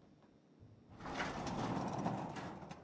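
A metal roller shutter rattles loudly as it rolls.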